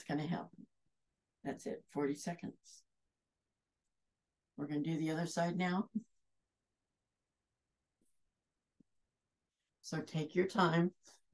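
A middle-aged woman speaks calmly into a nearby microphone, pausing between phrases.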